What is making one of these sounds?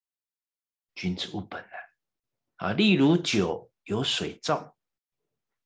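A middle-aged man reads aloud calmly and close to a microphone.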